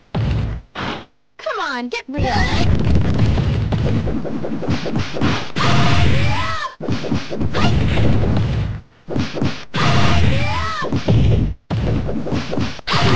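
Punches and kicks land with rapid thuds.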